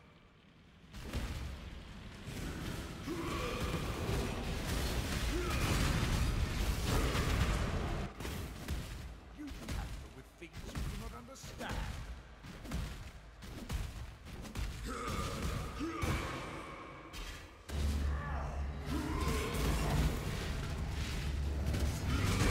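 Fiery spell blasts roar and crackle during a fight.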